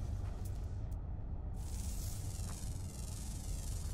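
A scanner whirs and chirps.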